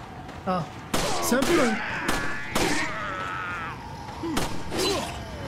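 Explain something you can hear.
Gunshots crack loudly in quick bursts.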